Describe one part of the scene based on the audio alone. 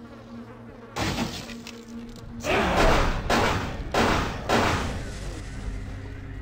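Loud blasts roar and crackle close by.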